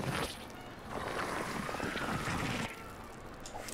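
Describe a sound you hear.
A stone pillar rumbles as it rises from the ground.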